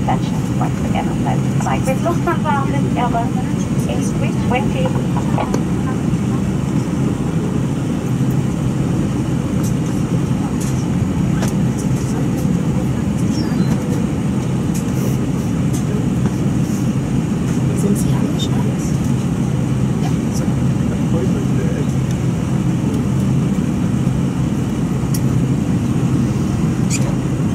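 A jet airliner's engines rumble steadily, heard from inside the cabin.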